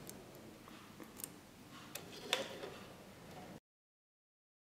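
Fingers pluck piano strings, ringing softly.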